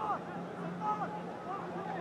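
A young man shouts across an open stadium.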